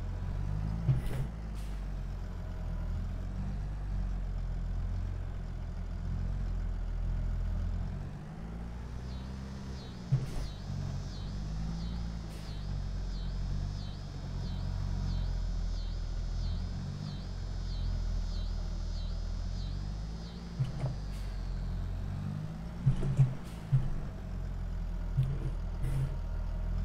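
A tractor engine rumbles steadily, rising and falling as it moves.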